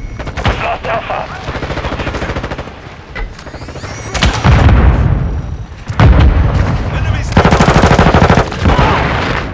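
Rapid gunfire rattles in short bursts.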